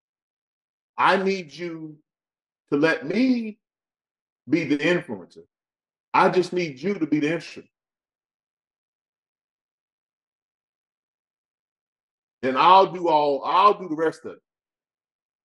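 A man speaks with animation, close to a microphone, in short bursts.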